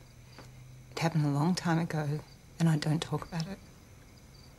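A young woman speaks softly and tensely.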